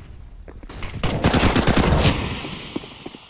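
Pistol shots fire in quick succession.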